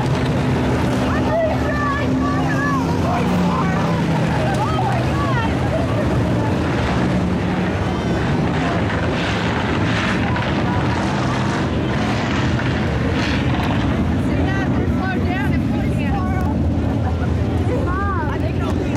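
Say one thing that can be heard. Race car engines roar and drone steadily nearby.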